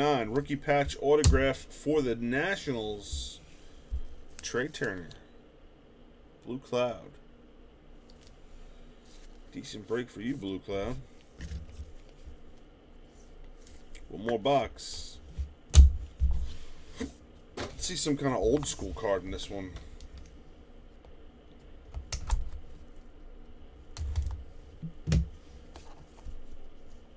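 Hands handle trading cards with soft rustles and taps.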